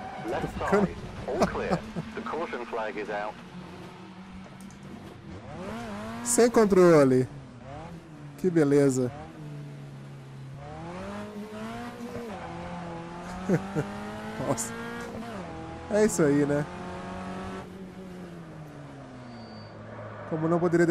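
A racing car engine revs up and drops in pitch as it shifts gears.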